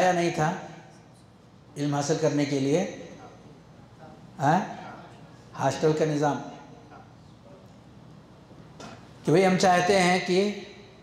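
A man speaks calmly into a microphone in short phrases with pauses.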